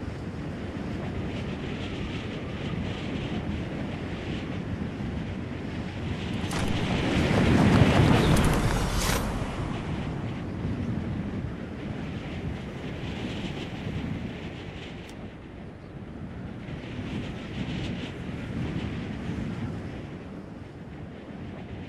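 Wind rushes past steadily during a fall through the air.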